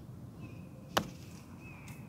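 A putter taps a golf ball with a sharp click.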